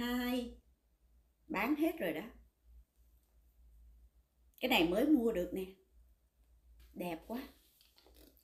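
A middle-aged woman speaks close by with animation, in short bursts.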